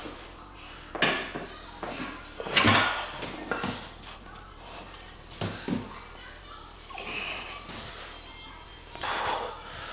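A young man breathes out hard with each effort.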